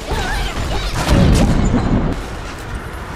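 A loud explosion booms.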